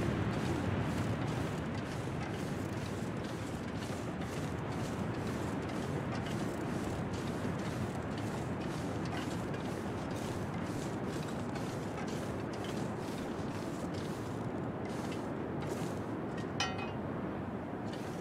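A strong blizzard wind roars steadily outdoors.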